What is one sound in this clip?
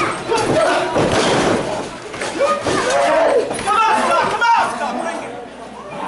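A body thuds heavily onto a ring mat.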